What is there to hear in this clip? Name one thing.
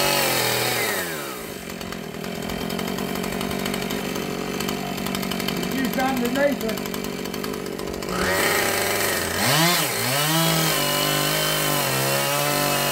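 A chainsaw idles and revs loudly up and down nearby.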